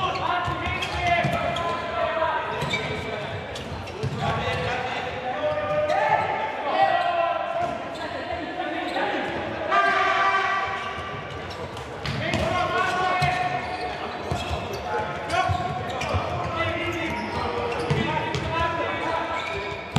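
A ball thuds as it is kicked in an echoing hall.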